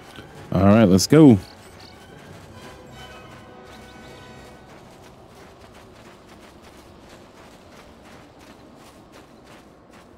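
Footsteps pad softly through grass.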